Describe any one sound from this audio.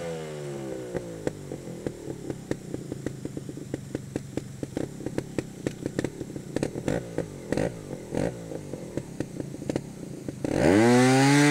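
A motorcycle engine putters and pops at low revs.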